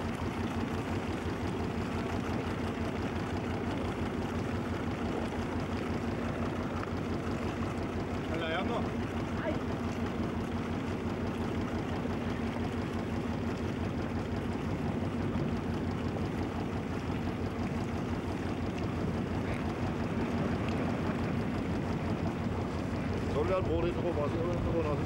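Wind blows steadily across the microphone outdoors.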